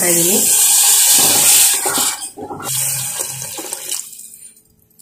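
Water pours into a pot and splashes.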